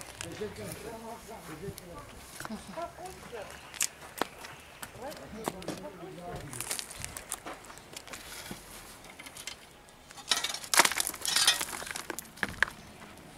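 Hands press soil around a plant in a pot with a soft crumbling rustle.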